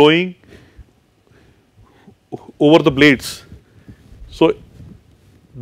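A man speaks calmly and deliberately in a room with a slight echo.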